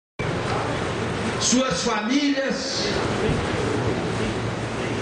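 A middle-aged man speaks into a microphone over loudspeakers outdoors.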